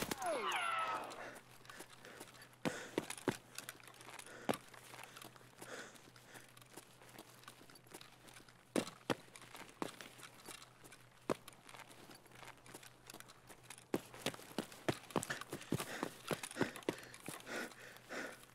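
Footsteps crunch over grass and rock outdoors.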